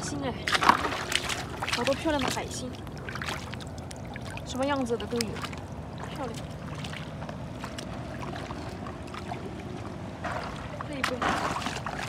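Shallow water splashes and sloshes around wading feet.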